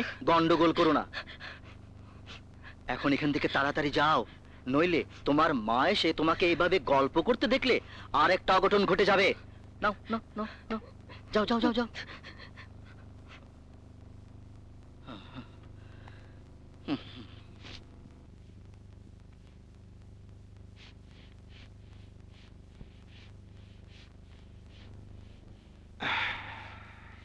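A middle-aged woman speaks up close.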